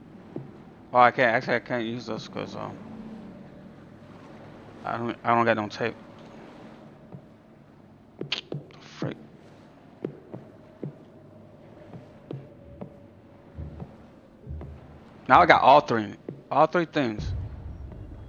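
A young man talks with animation into a nearby microphone, in short bursts.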